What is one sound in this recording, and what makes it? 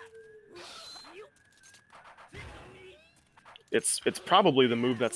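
Swords clash and slash in a video game fight.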